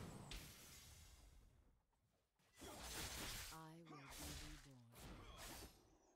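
Magical spells whoosh and burst.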